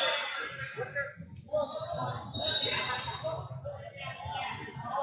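A crowd of spectators chatters in a large echoing hall.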